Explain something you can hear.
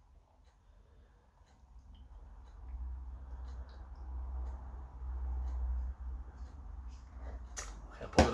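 Beer pours from a can into a glass, fizzing softly.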